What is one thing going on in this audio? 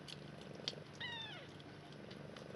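A newborn kitten mews briefly.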